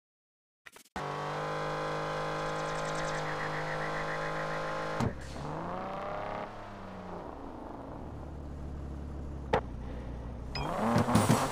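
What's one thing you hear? A sports car engine idles with a deep rumble.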